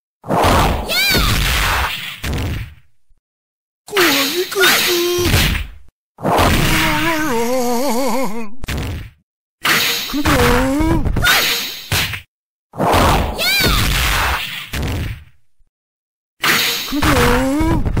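Heavy punches and kicks land with loud thuds and smacks.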